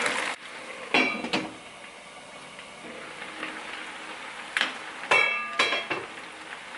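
A metal lid clinks against a pan.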